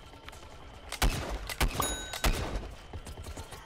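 A blaster fires a quick burst of shots.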